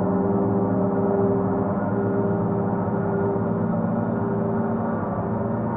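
A mallet strikes a gong softly.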